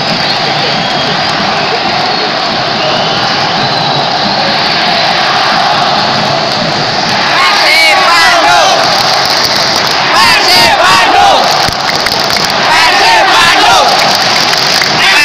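A huge stadium crowd chants and sings loudly, echoing around the open stands.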